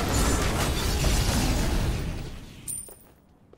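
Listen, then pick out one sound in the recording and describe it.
A fiery blast roars loudly, then fades.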